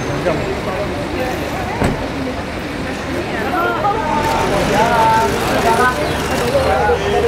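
A crowd of people chatter and call out close by.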